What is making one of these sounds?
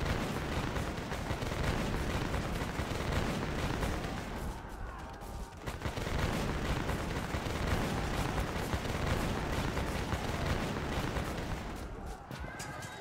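Muskets fire in crackling volleys amid battle noise.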